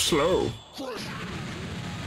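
An energy blast whooshes and roars.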